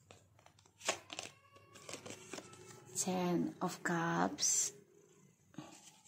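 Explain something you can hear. Playing cards rustle and slap together in a hand.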